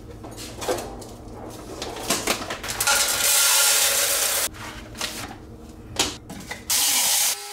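Dishes and utensils clink and knock against a counter.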